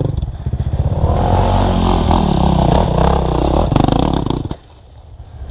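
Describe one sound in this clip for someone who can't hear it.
A two-stroke dirt bike revs hard close by.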